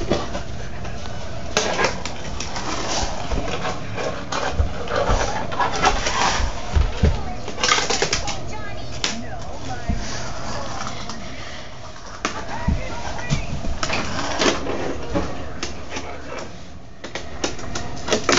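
A small toy car rolls and clatters over a wooden floor and cardboard.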